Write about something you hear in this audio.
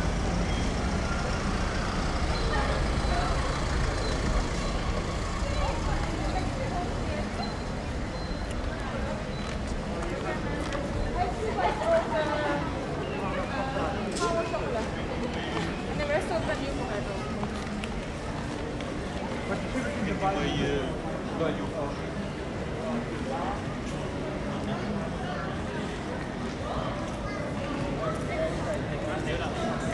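A crowd of men and women murmur and chatter nearby as they pass.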